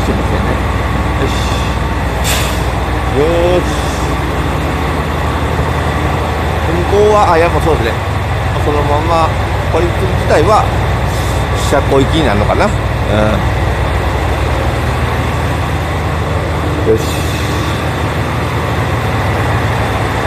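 A diesel train engine rumbles steadily and low nearby.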